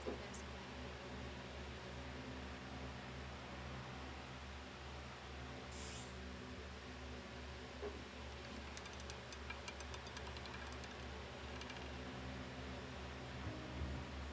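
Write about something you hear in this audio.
A roulette ball rolls around a spinning wheel.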